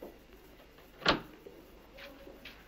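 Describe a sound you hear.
A door opens with a click.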